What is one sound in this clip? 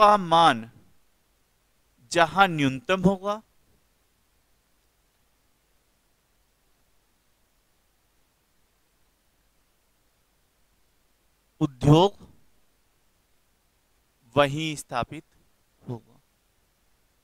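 A man speaks in short bursts, close to a microphone, explaining calmly.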